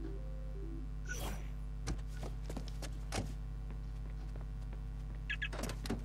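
A car door opens and shuts with a thud.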